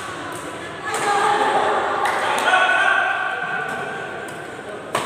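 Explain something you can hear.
Men call out to each other in an echoing sports hall.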